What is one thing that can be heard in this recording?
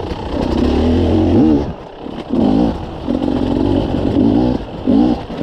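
A motorcycle engine revs up and down, close by.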